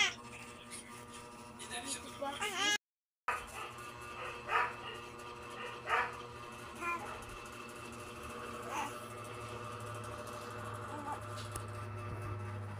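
A small electric fan hums steadily.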